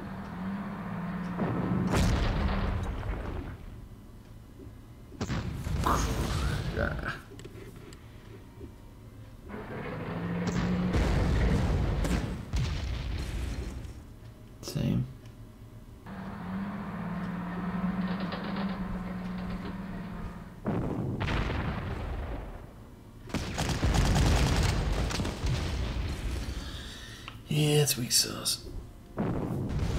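Guns fire with loud booms.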